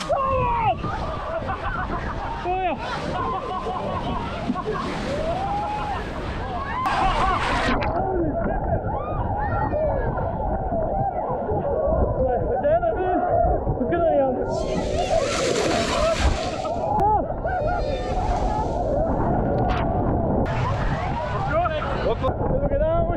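A young man talks excitedly and laughs close to the microphone.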